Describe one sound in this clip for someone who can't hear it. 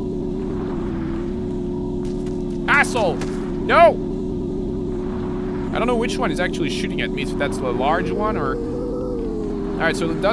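A dirt bike engine hums steadily at a constant pitch.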